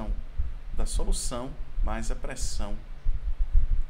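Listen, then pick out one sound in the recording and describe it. A man speaks calmly into a microphone, as if on an online call.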